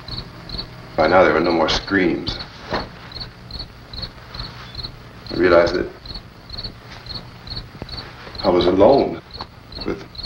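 A man cries out in distress, close by.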